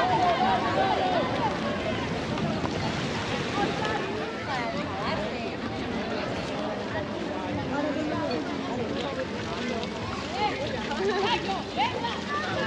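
Many men and women chatter and call out around the listener outdoors.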